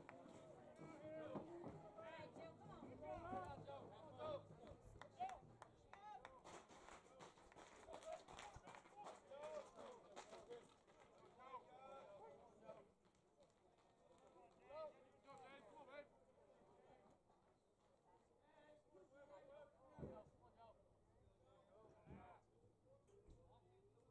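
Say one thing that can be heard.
Young men shout and chatter from across an open field.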